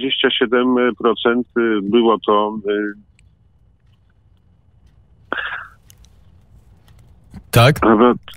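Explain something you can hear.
A middle-aged man speaks calmly and close into a microphone, with pauses.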